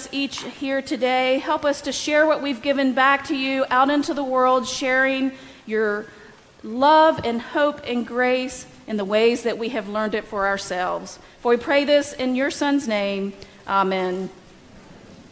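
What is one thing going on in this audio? A woman chants in a clear voice through a microphone in an echoing hall.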